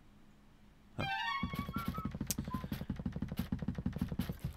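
Rhythmic game music plays with a steady beat.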